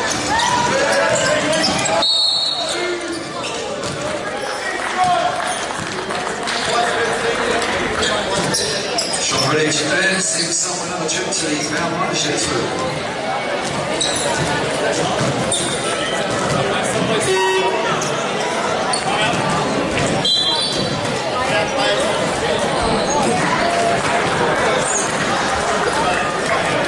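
Young men shout and call out to each other across an echoing hall.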